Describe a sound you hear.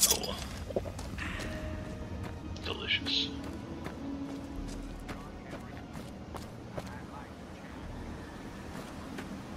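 Footsteps crunch steadily over gravel and dirt.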